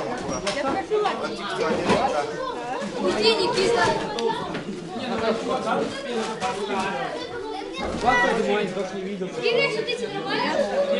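Children and teenagers talk and laugh loudly.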